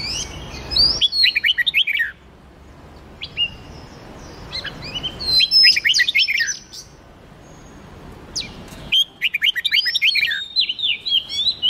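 Songbirds sing loud bursts of quick, rising and falling whistled notes.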